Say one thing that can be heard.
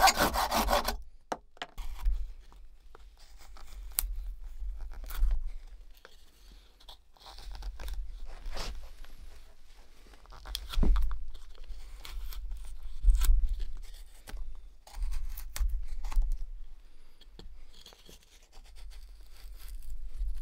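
A knife scrapes and whittles wood in short strokes.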